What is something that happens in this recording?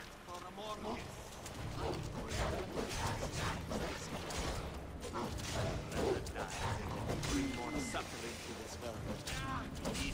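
Blades clash and strike during a fight.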